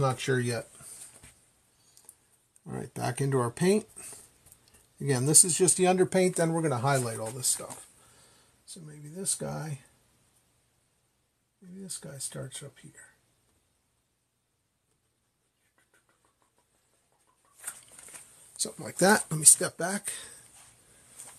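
A man talks calmly and steadily close by.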